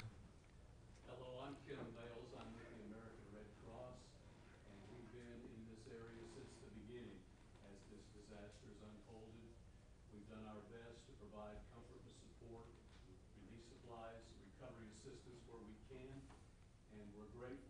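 A man speaks calmly through a microphone in a room with a slight echo.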